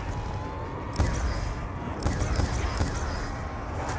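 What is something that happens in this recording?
A weapon fires with zapping bursts.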